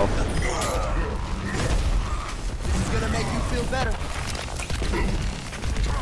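Game weapons fire in rapid bursts with booming impacts.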